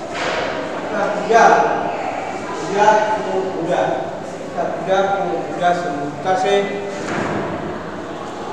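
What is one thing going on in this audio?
A middle-aged man speaks calmly, as if teaching, in a room with some echo.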